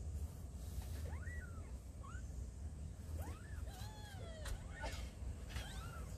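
A kitten mews in high, thin squeaks.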